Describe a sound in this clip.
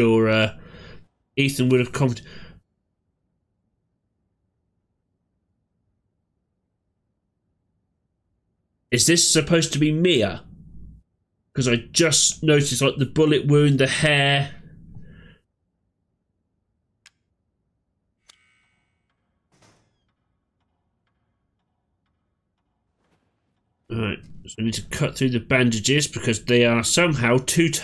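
A man talks with animation, close to a headset microphone.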